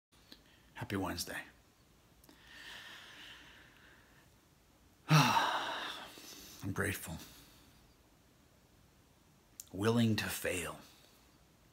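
A man talks calmly and close up, in short bursts with pauses.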